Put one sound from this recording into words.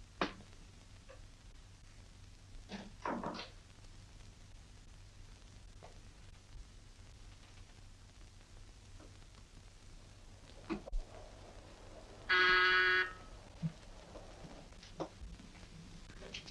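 Heels tap on a floor as a woman walks.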